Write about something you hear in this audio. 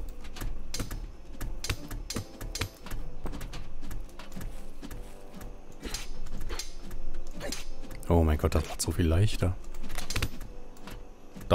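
A sword swishes through the air in quick swings.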